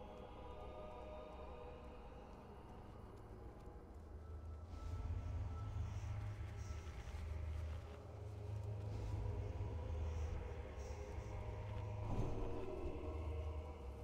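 Magical spell effects whoosh and crackle.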